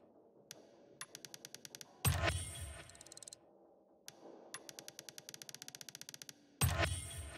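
Rapid, even clicking ticks sound as a menu slider moves.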